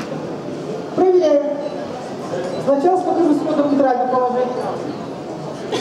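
A woman speaks calmly into a microphone, heard over a loudspeaker.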